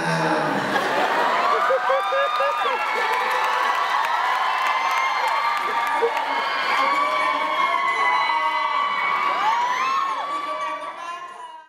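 A young man sings into a microphone over loudspeakers.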